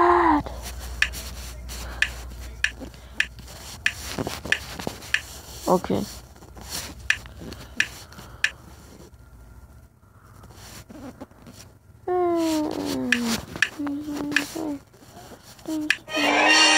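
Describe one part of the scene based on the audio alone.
Wooden blocks click as they slide into place.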